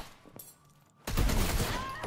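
A weapon fires sharp zapping blasts.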